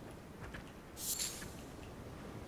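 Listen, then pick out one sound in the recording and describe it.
A weapon swishes sharply through the air.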